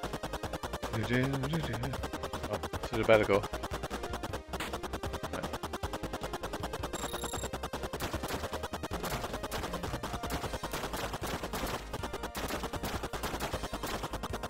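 Electronic explosions burst in a retro video game.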